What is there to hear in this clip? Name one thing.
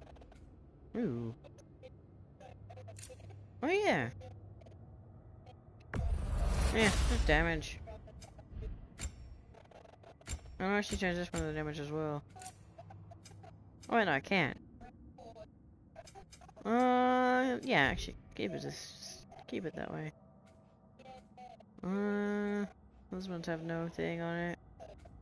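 Short electronic menu tones chime as options are picked.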